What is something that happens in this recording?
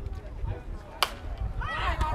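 A bat sharply cracks against a baseball.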